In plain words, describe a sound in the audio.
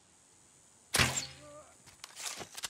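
A single gunshot cracks loudly and echoes across open ground.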